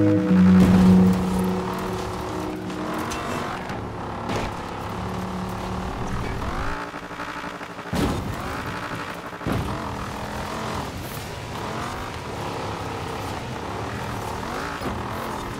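A car engine roars and revs up and down as it races.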